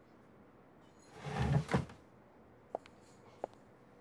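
A glass clinks softly on a table.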